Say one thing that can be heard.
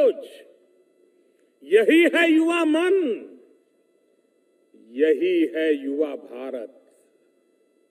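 An elderly man speaks forcefully, in bursts, through a microphone and loudspeaker.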